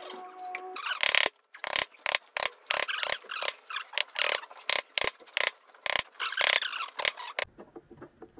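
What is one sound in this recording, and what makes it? A chisel pares wood by hand with short scraping cuts.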